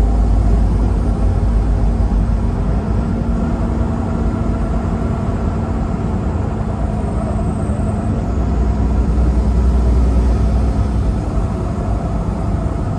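Tyres roar on the road surface.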